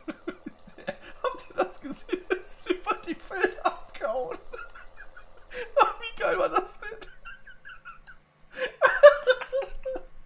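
A young man laughs loudly, close to a microphone.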